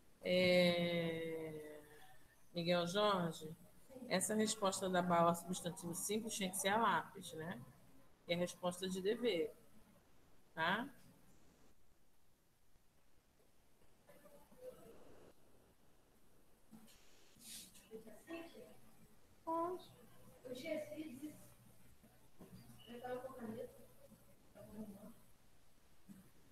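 A woman speaks calmly into a microphone, heard through an online call.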